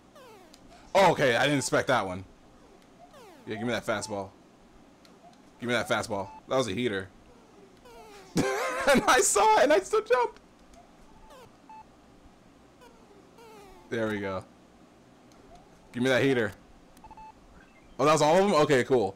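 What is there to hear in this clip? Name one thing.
A young man talks with animation into a microphone, in short bursts.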